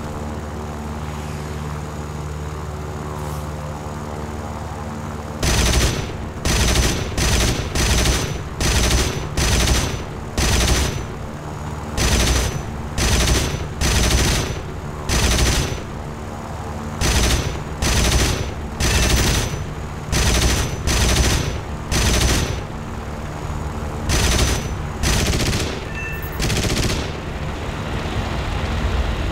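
A V-12 piston fighter plane engine drones.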